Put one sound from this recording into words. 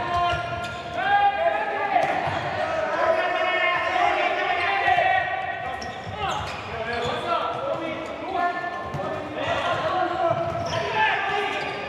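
A ball thuds off players' feet in an echoing indoor hall.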